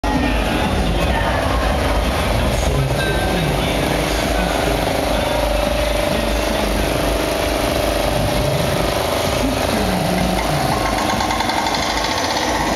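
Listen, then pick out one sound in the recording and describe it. An engine drones steadily close by.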